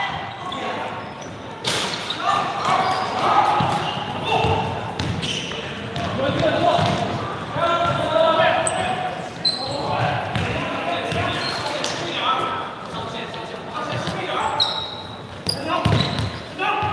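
Young men shout and call out to each other in a large echoing gym.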